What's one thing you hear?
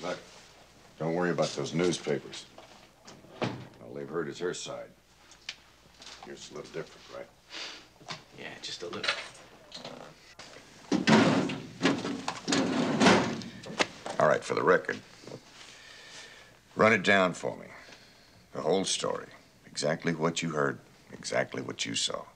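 A middle-aged man speaks calmly and firmly, close by.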